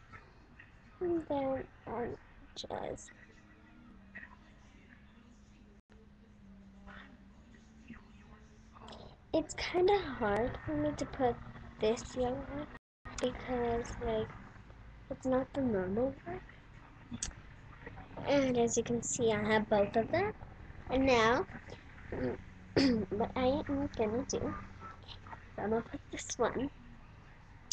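A young girl talks close to a webcam microphone.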